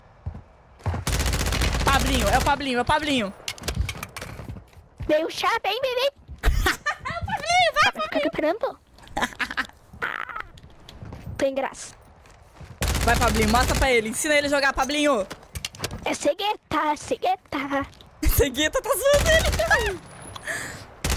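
A young woman talks and laughs into a close microphone with animation.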